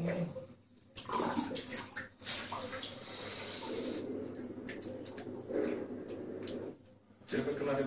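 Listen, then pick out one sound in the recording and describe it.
Water splashes and sloshes in a bathtub.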